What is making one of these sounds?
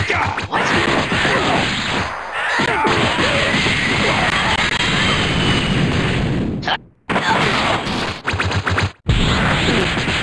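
Punches and kicks land with heavy thuds in a video game fight.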